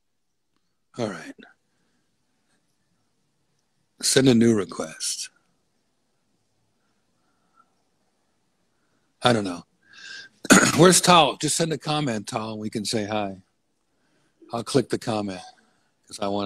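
A man speaks into a close microphone with animation, in short bursts.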